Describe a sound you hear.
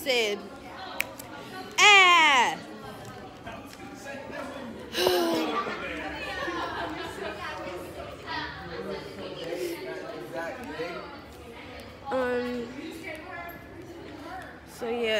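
A young woman talks close to a phone microphone with animation.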